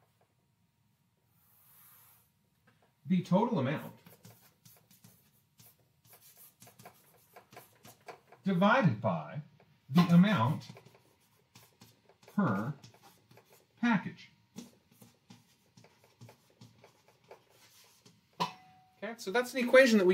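Chalk taps and scrapes on a board.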